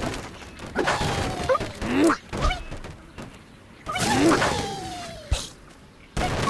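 A cartoon bird squawks as it flies.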